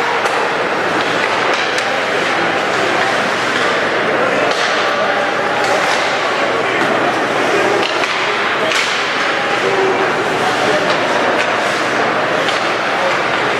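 Hockey sticks clack sharply against the puck.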